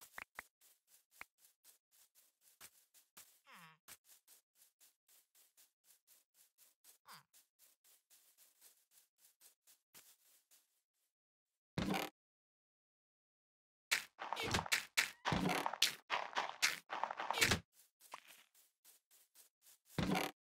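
Game footsteps crunch on grass.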